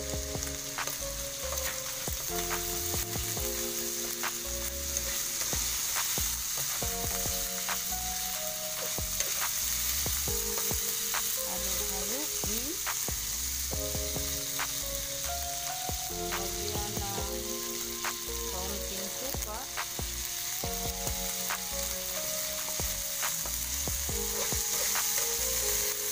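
Meat sizzles and crackles in hot oil.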